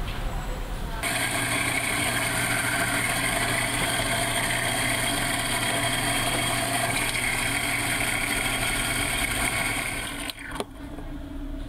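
An electric coffee grinder whirs loudly.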